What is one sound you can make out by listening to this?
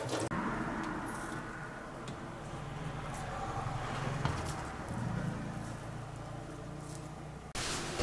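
Fingers tear soft mushrooms apart.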